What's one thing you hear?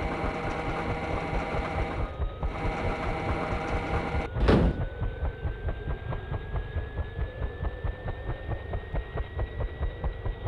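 A helicopter's rotor blades thump in a steady rhythm.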